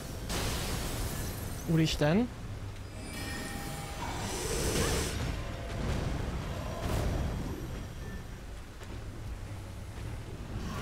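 Swords clash and magic blasts boom during a battle.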